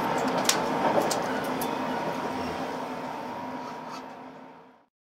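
Loose fittings in a train carriage click and creak.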